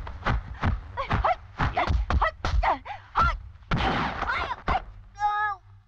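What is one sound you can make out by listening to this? Blows thud and smack in a scuffle.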